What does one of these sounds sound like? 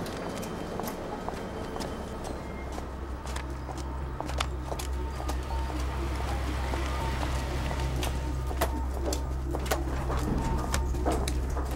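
High heels click on pavement.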